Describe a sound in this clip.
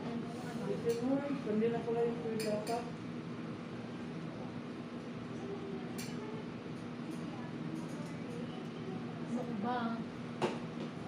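A woman speaks nearby in a calm voice.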